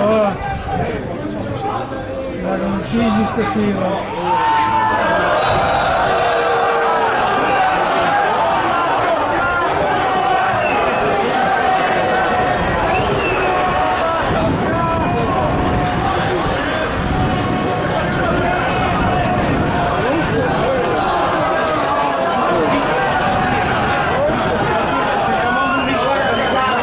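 A large crowd of fans chants and sings loudly outdoors.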